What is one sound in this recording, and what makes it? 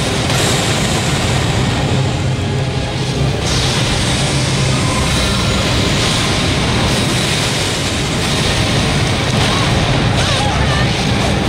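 Fiery magic blasts roar and crackle.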